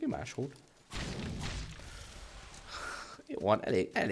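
A game explosion bursts with a fiery roar.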